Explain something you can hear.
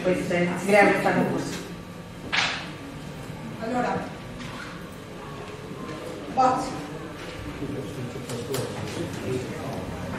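A woman speaks into a microphone in a room with some echo.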